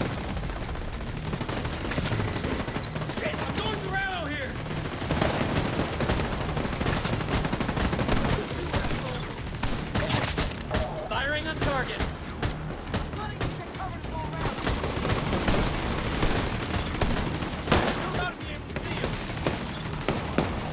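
Gunfire crackles in rapid bursts nearby.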